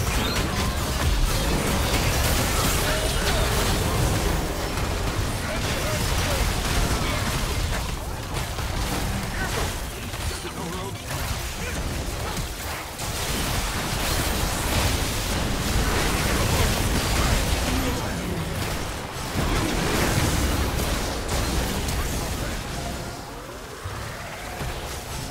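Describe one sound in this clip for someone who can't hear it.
Magic spells whoosh, crackle and explode in a busy video game battle.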